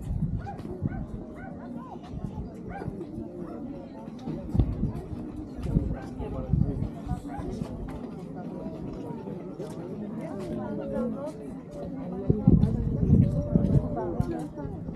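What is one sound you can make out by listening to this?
Wind buffets the microphone in gusts.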